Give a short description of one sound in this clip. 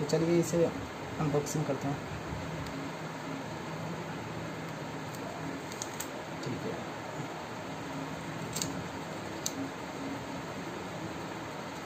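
Scissors snip through cardboard.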